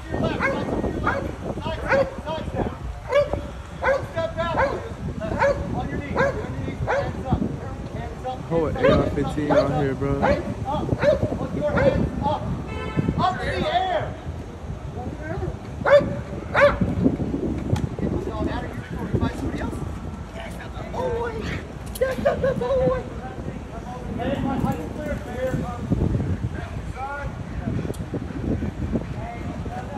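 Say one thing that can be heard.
Men shout commands at close range, outdoors.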